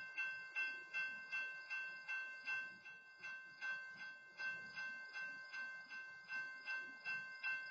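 A freight train rumbles past with wheels clacking on the rails.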